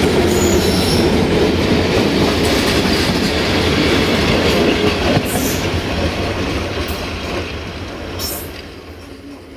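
A passing train rumbles and clatters loudly close by, then fades.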